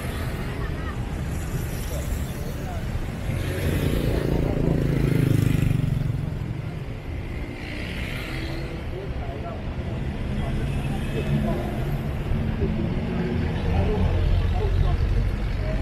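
Traffic rumbles through a city intersection.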